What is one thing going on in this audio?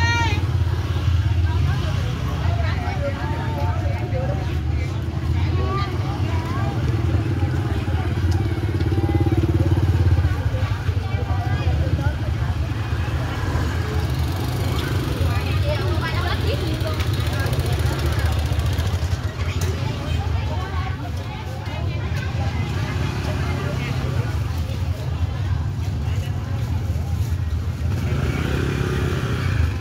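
Motorbike engines putter past close by.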